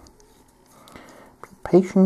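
A small hand drill twists quietly into plastic.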